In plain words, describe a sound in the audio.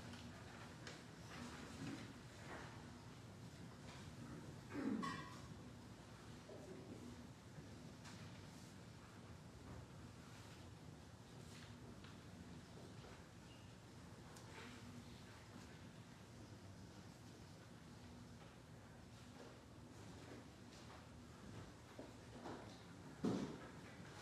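A man speaks quietly and calmly in a large echoing hall.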